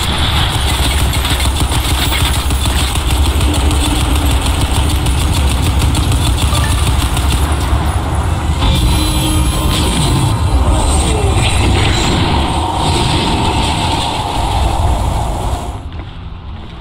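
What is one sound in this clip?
Heavy gunfire rattles rapidly.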